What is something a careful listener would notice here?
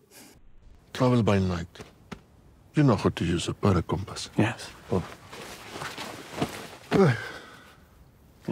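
A man speaks in a low, gruff voice close by.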